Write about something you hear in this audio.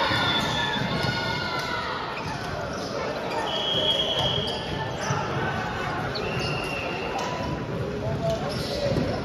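A crowd of young men and women talk and call out in a large echoing hall.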